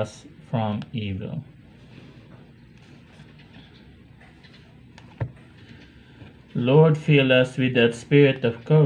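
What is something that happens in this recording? A man reads out calmly and close up.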